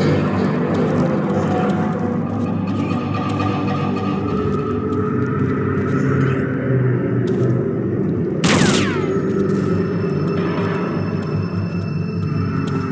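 Footsteps thud steadily on stone.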